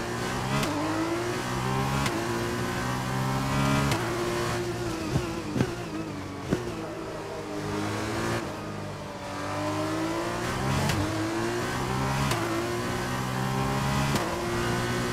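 A racing car engine screams and shifts up through the gears.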